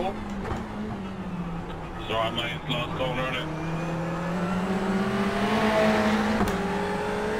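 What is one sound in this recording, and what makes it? A race car engine roars steadily and climbs in pitch as it speeds up.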